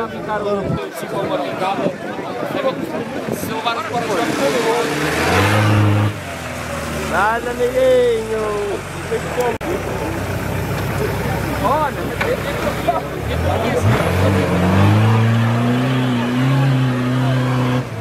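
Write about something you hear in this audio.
A crowd of men and women talks and shouts outdoors.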